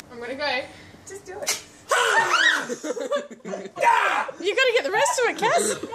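A middle-aged man laughs and shouts nearby.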